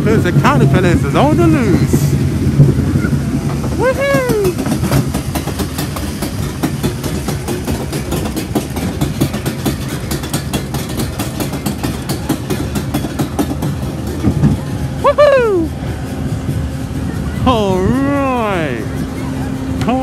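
A fairground ride rattles and clatters as it spins fast.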